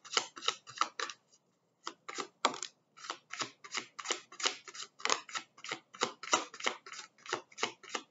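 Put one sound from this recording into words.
Playing cards are laid down softly on a cloth.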